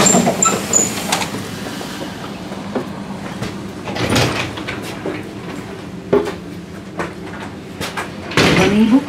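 Footsteps thud on metal steps and a floor.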